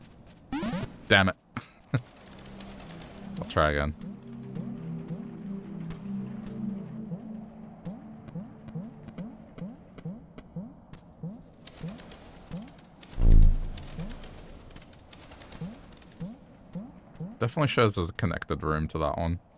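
Short electronic game sound effects chirp and blip.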